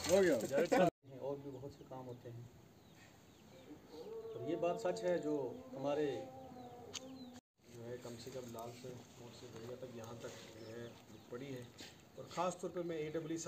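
A man speaks to a small group outdoors in a raised, steady voice.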